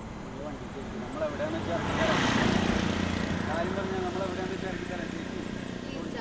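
A motor vehicle drives past with its engine rumbling.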